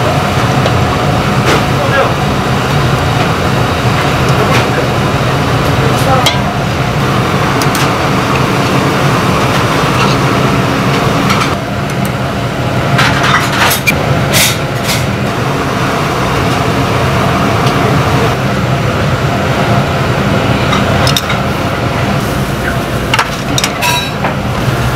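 Gas burners roar steadily.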